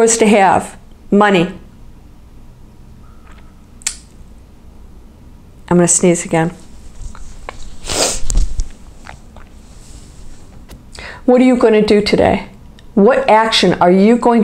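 A middle-aged woman speaks close to a microphone, calmly and expressively, with pauses.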